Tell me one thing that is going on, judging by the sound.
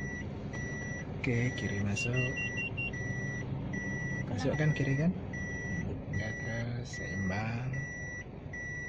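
A young woman speaks inside a car.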